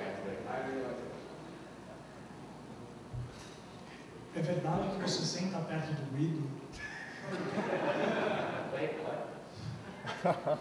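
A man speaks into a microphone in a large hall, heard through loudspeakers.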